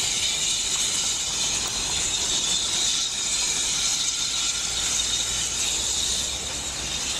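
A steam locomotive rumbles slowly closer along a track.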